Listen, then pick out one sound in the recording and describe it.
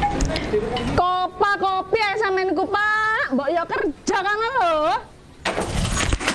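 A woman speaks sharply from behind a window.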